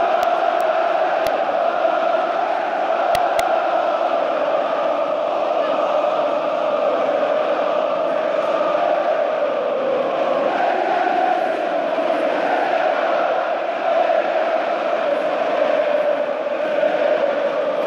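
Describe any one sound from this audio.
A huge stadium crowd sings and chants loudly in unison, echoing under the roof.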